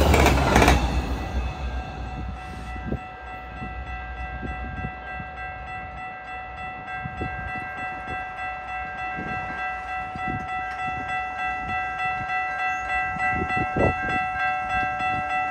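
A railway crossing bell rings in a quick steady rhythm.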